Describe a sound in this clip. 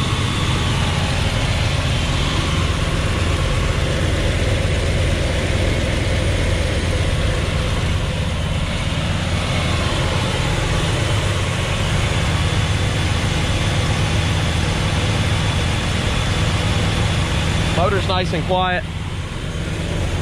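A large car engine idles with a deep, steady rumble.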